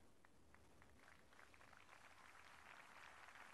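A crowd claps in the distance outdoors, growing louder.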